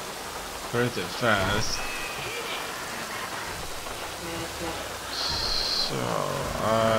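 Rain patters on a road.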